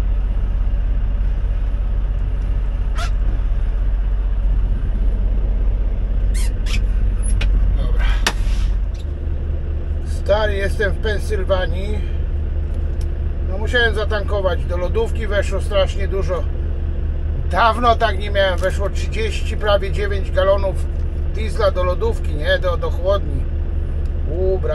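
A truck engine idles with a deep, steady rumble.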